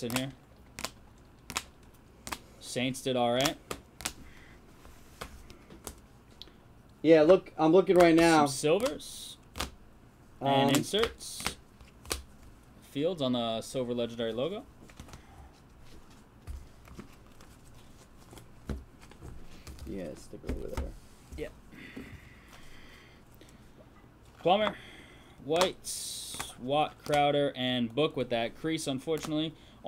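Plastic card cases click and clack as they are handled.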